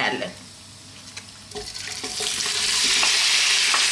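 Pieces of raw meat drop into a hot pan.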